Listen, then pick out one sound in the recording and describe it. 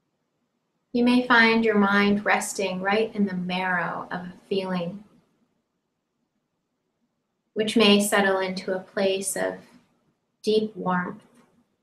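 A woman speaks calmly and softly, close to a microphone, with long pauses.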